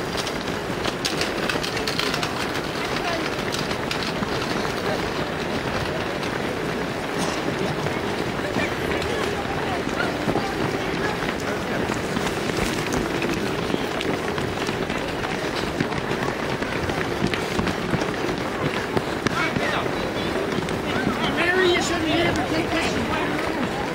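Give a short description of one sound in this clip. Many feet patter on a road as a crowd of runners passes close by.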